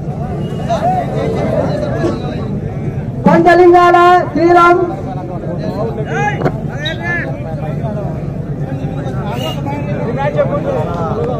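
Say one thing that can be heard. A large crowd chatters and shouts outdoors.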